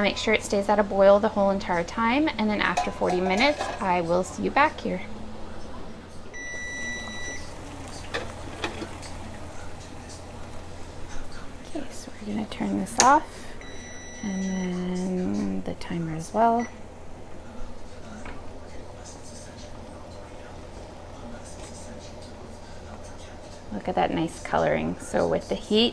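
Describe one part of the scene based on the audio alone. Water bubbles at a steady boil.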